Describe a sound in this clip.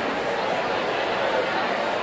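Footsteps tread across a wooden stage.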